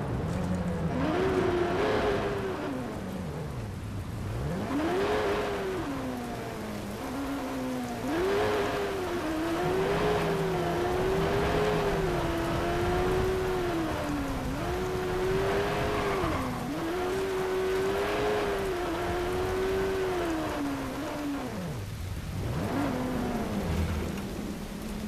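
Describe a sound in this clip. A motorcycle engine revs up and down as the bike speeds along.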